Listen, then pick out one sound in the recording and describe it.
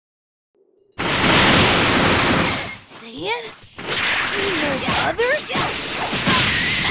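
A powerful energy aura roars loudly.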